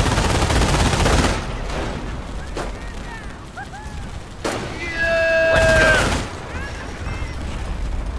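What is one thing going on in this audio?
Gunfire and explosions rumble across a battlefield.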